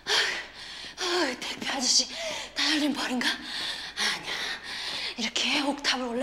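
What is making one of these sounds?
Footsteps run quickly up stairs.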